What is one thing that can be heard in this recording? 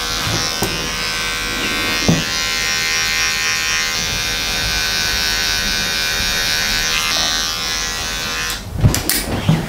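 Electric hair clippers buzz steadily close by.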